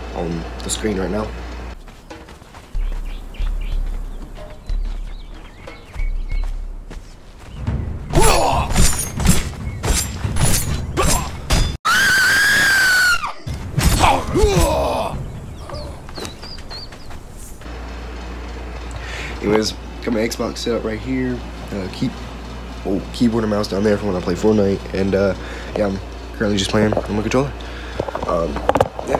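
A young man talks with animation close to a phone microphone.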